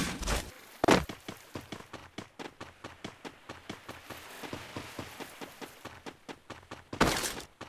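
Quick footsteps rustle through grass.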